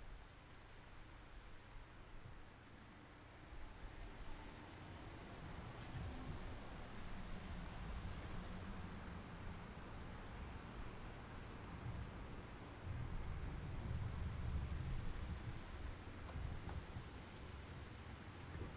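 Fountains splash steadily in the distance.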